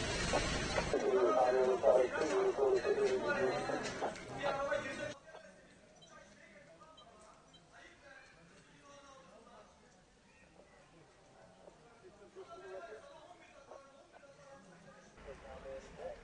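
A small crowd of men and women talk quietly outdoors.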